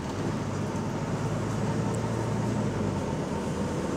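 A car passes by outside.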